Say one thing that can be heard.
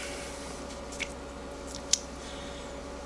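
Small plastic parts click softly between fingers.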